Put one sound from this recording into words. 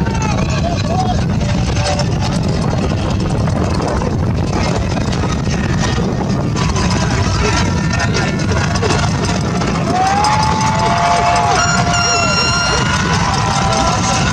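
A crowd cheers and shouts across a large open stadium outdoors.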